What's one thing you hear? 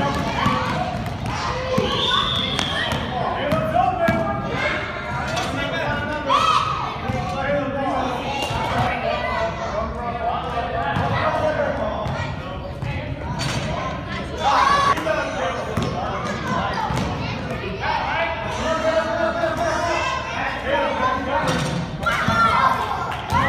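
Children shout and chatter in a large echoing hall.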